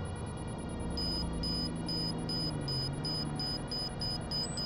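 An electronic beep repeats quickly.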